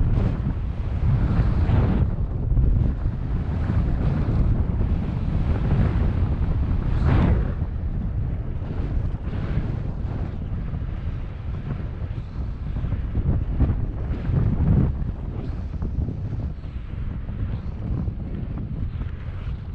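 Wind rushes loudly past, rumbling low.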